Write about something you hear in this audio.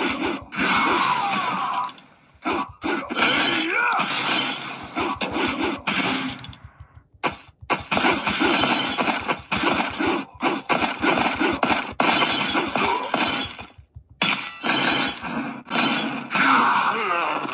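Sword slash and hit sound effects play from a tablet action game.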